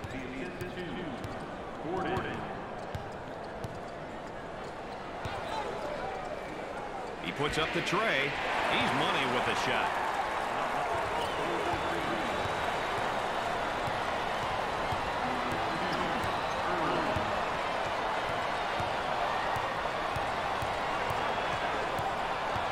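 A large crowd murmurs and cheers in an echoing arena, swelling into a loud roar.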